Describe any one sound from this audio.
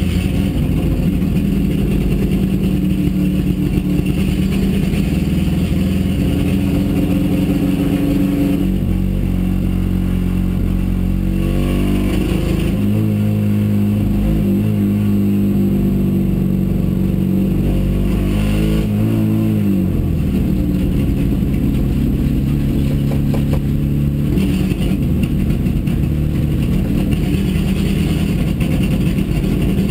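Gravel and loose stones rattle against the underside of the car.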